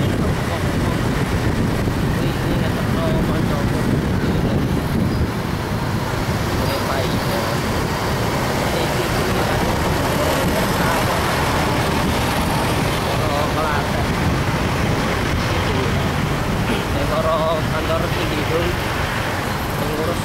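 Car and motorbike engines hum steadily in traffic nearby.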